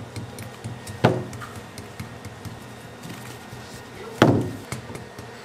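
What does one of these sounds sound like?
A slab of candy dough slaps down onto a table with a thud.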